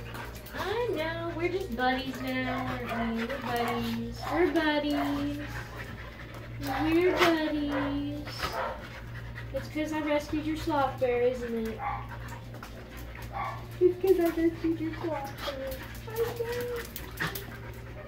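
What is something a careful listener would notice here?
A husky howls and yowls in loud, wavering cries.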